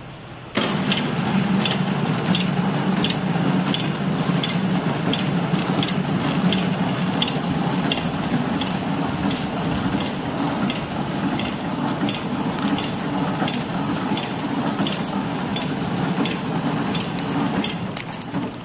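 A packaging machine clicks in a quick, even rhythm.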